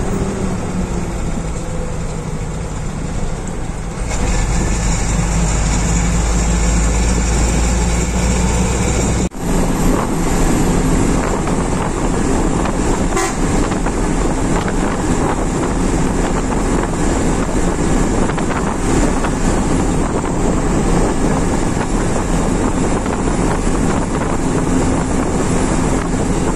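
A bus engine drones steadily from inside the cab.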